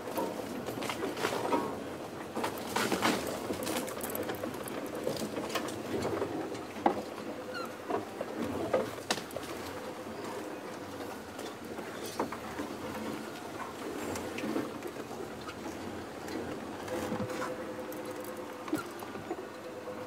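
A vehicle body rattles and knocks over bumps.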